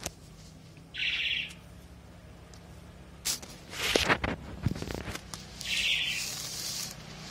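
A kitten mews in short high cries.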